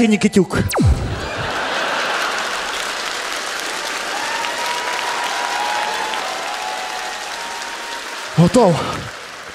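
An audience laughs and applauds.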